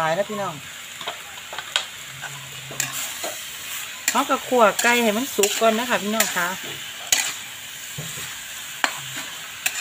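A metal spoon clinks and scrapes against a metal bowl.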